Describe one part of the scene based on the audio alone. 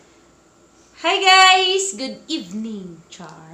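A young woman speaks cheerfully and with animation, close by.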